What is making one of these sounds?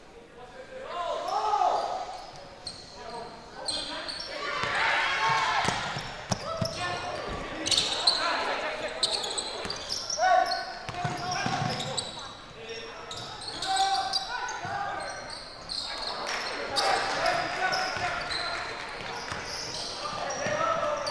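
A crowd of spectators shouts and cheers in an echoing hall.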